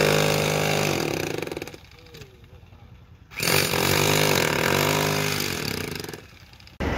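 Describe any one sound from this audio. A hammer drill roars and rattles into concrete in two long bursts.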